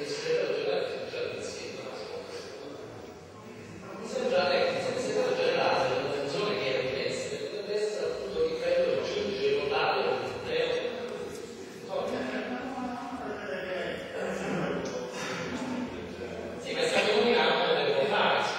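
A man speaks loudly with animation through a microphone in a large echoing hall.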